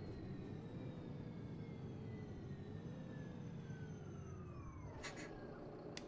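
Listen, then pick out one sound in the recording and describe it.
A bus engine winds down as the bus slows to a stop.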